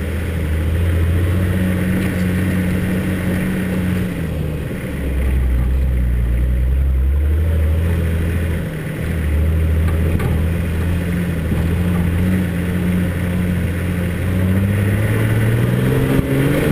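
A vehicle engine hums low and rises and falls in pitch as it drives.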